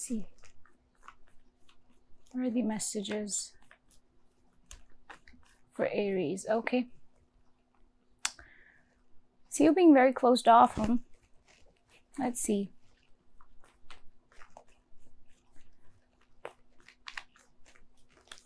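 Playing cards are shuffled and riffled by hand.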